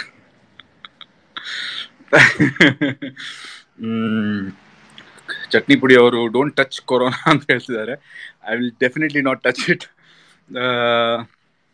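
A man laughs close to a phone microphone.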